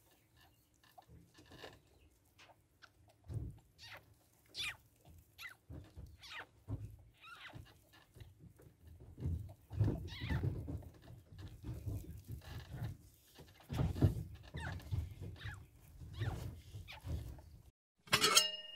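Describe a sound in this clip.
Rabbits shift and rustle softly in dry hay.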